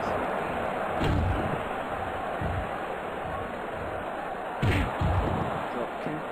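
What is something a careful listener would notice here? Heavy bodies thud onto a mat.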